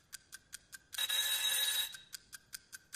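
An alarm clock rings loudly for a moment.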